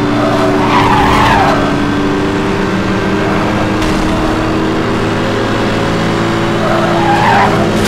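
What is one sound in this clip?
A car engine roars steadily at high speed.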